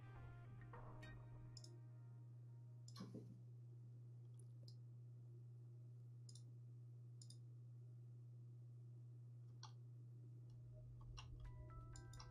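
Mouse buttons click now and then, close by.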